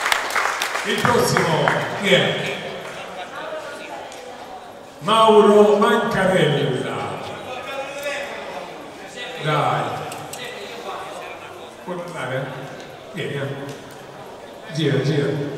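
A man speaks with animation through a loudspeaker microphone.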